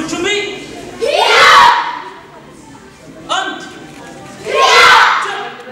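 A group of young students shout together sharply in an echoing hall.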